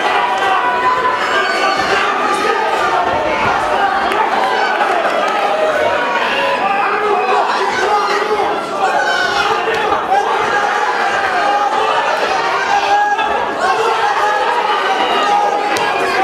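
A crowd of spectators talks and shouts throughout in an echoing hall.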